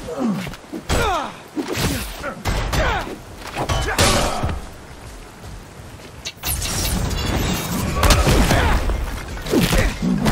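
Fighters' blows land with heavy thuds and whooshes.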